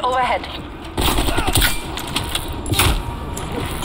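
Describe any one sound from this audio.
A sniper rifle fires a loud, sharp shot.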